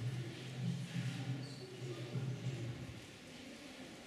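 A middle-aged man speaks calmly into a microphone in an echoing hall.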